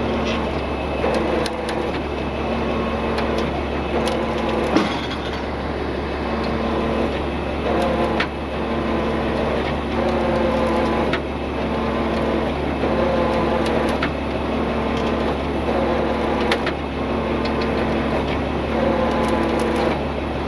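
A heavy truck engine idles with a steady low rumble.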